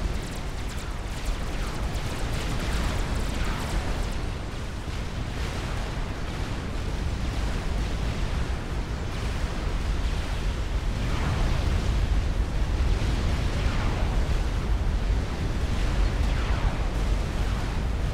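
A deep battle rumble roars steadily.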